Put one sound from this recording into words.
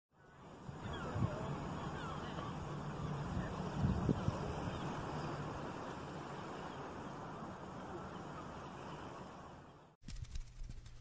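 Gentle sea waves wash and ripple steadily.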